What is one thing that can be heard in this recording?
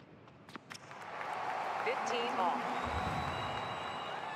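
A crowd murmurs and applauds.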